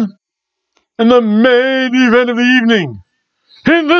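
A middle-aged man sings out loudly in a drawn-out voice.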